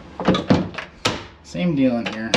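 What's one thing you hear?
A metal door latch handle clicks and clunks as it turns.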